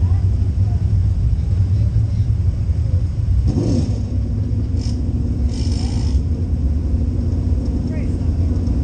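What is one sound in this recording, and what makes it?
A V8 engine of a dirt late model race car roars from inside the cockpit.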